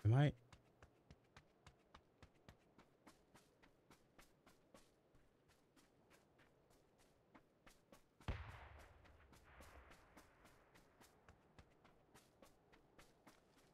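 Quick footsteps patter steadily on the ground.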